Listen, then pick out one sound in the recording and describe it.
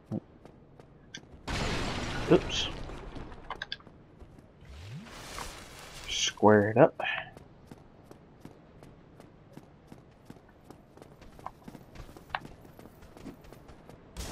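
Footsteps patter on stone.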